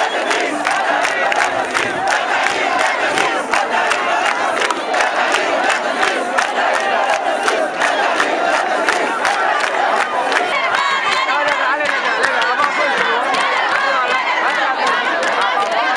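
People in a crowd clap their hands.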